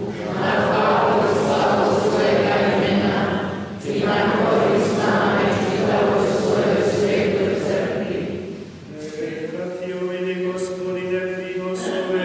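An elderly man chants prayers through a microphone in a large echoing hall.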